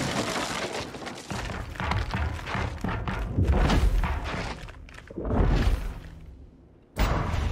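Heavy gunfire and blasts boom in rapid bursts.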